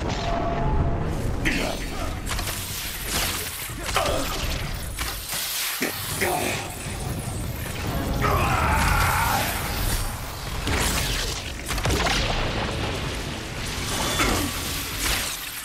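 Arrows whoosh and zap as they strike.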